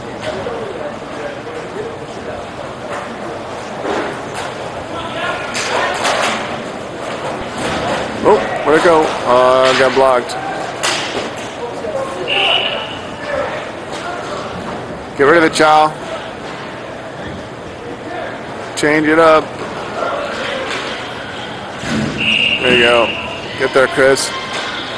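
Hockey sticks clack and a ball knocks on a hard floor.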